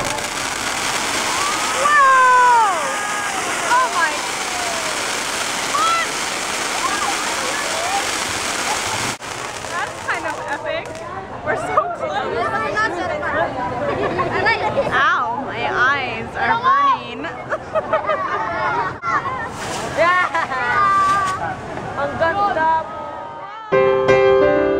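A crowd of people shouts and cheers nearby.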